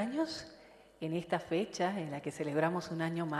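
A young woman speaks through a microphone.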